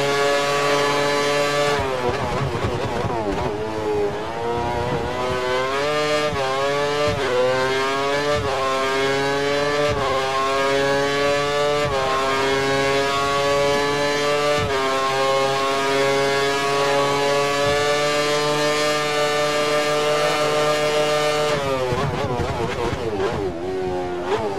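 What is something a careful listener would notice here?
A racing car engine screams loudly, rising in pitch through each gear and dropping sharply at every shift.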